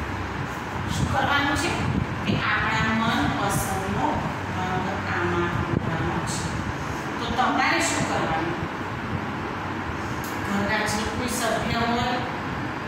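A woman speaks clearly and steadily close by.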